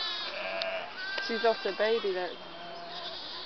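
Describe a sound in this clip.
A ewe baas in a deeper voice nearby.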